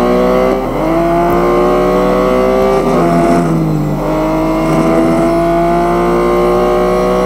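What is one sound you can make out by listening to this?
A racing car engine roars at high revs, its pitch dropping and rising as it shifts gears.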